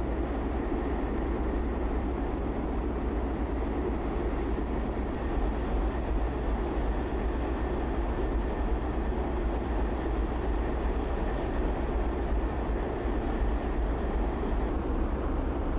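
A tugboat engine rumbles steadily nearby.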